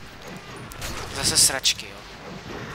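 An explosion booms nearby.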